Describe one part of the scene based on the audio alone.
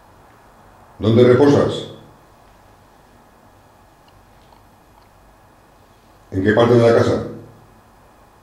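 A man speaks in short loud bursts close by.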